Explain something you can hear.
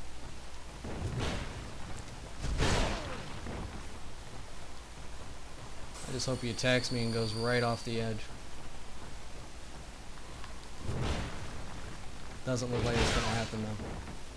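A heavy blade swings through the air with loud whooshes.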